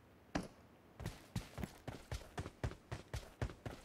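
Footsteps crunch quickly on a dirt path.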